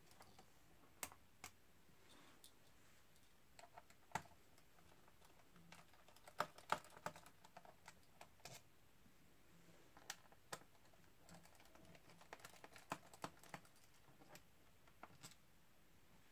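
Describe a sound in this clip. Small screws click and tap against a laptop case as they are handled.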